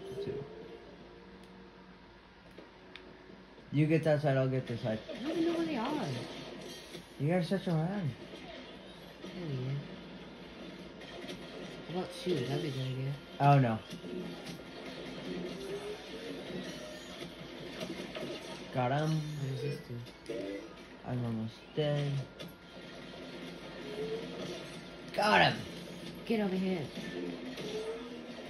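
Video game sounds play from a television.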